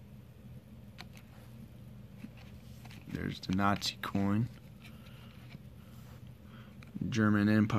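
Cardboard coin holders rustle and tap as fingers shift them.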